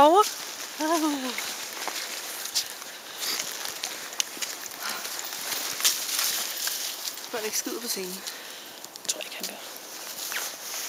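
Dry leaves rustle and crunch under running paws.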